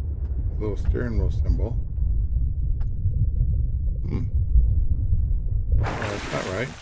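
Water rumbles and churns with a deep, muffled underwater sound.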